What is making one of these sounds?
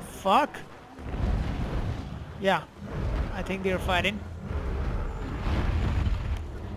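Heavy wings beat with a deep, rumbling whoosh.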